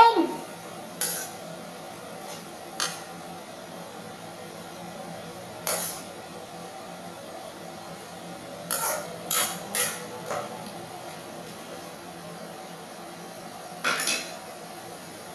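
A metal spatula scrapes and clanks against a wok.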